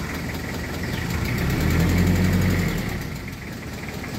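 A car engine revs up and settles back.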